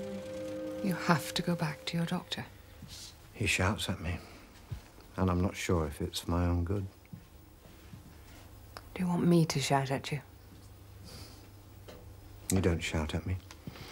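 A middle-aged man speaks quietly and seriously close by.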